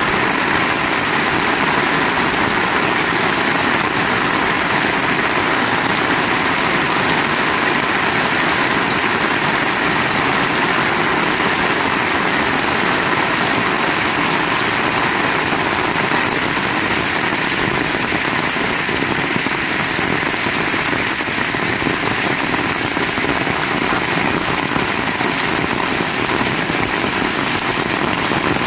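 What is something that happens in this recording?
Heavy rain falls steadily outdoors.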